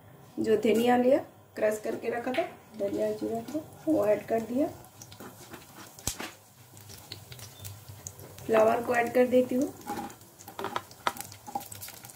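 Mustard seeds sizzle and crackle in hot oil.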